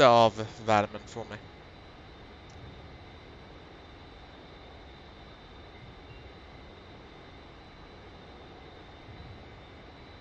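A jet engine drones steadily.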